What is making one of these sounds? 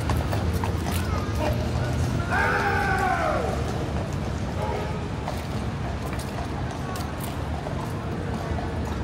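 A crowd chatters in the distance outdoors.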